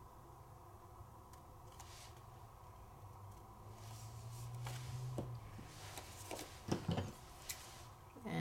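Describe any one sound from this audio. Paper rustles and scrapes as it is handled.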